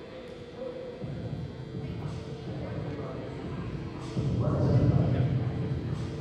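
Players talk and call out in a large echoing gym.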